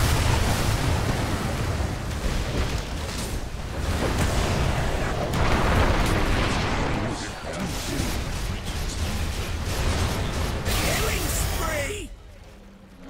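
Game spell blasts and clashing weapons crackle loudly in a chaotic battle.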